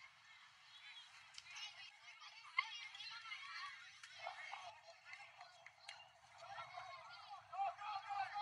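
Young players and spectators, men and women, chatter and call out outdoors at a distance.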